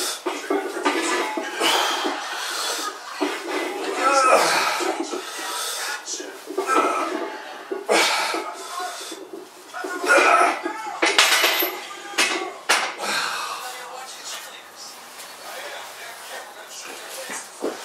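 A man breathes out hard with each lift.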